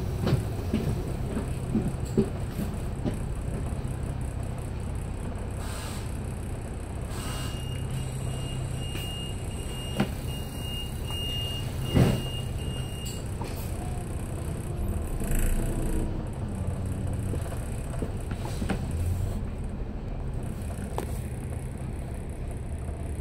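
City traffic rumbles steadily along a street.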